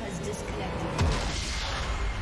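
A video game plays a loud explosion effect.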